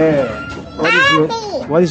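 A toddler babbles close by.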